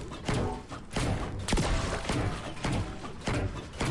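A treasure chest opens with a bright, chiming burst.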